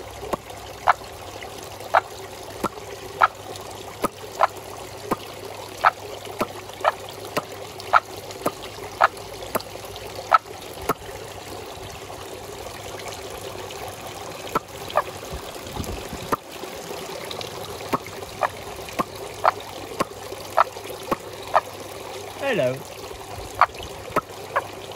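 Water drips steadily with short, bright plops.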